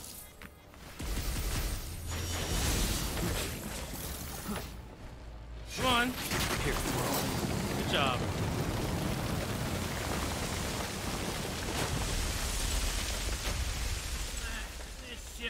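Loud blasts and crashing impacts ring out during a fight.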